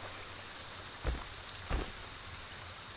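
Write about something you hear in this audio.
Heavy footsteps thud twice on the ground.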